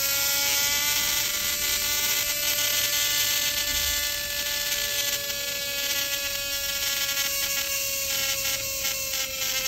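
An electric nail drill whirs with a steady high whine.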